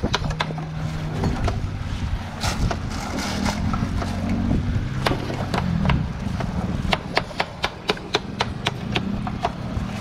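A knife taps and cuts against a plastic cutting board.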